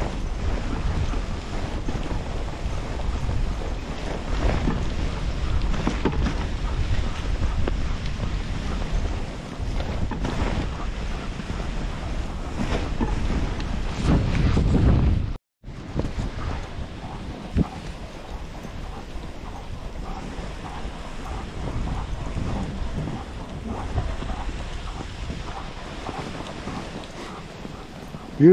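Sled runners hiss and scrape over packed snow.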